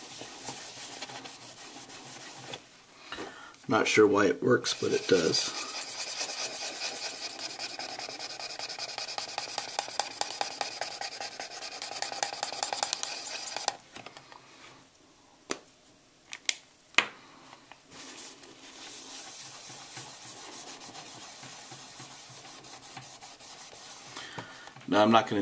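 Tissue paper rustles as it rubs over a plastic surface.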